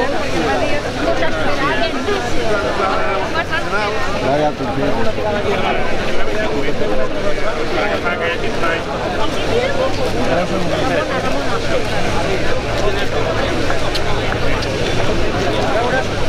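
A crowd of men and women talk and murmur all around, close by.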